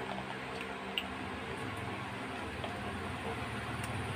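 A woman sips a drink through a straw.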